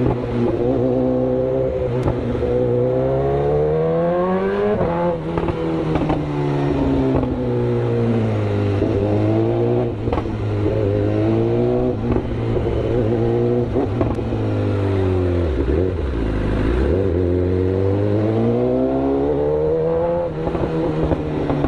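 A four-cylinder sport bike accelerates and shifts up through the gears.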